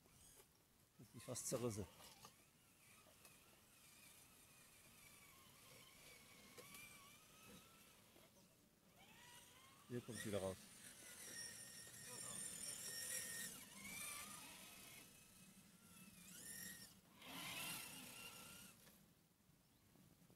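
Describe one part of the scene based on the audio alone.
A small electric motor whines and rises and falls in pitch as a toy truck drives over grass.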